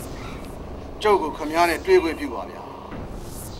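A man speaks loudly and firmly, close by.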